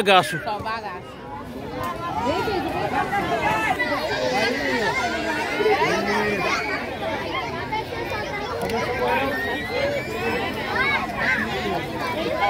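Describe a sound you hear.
A crowd of women and children chatter and shout outdoors.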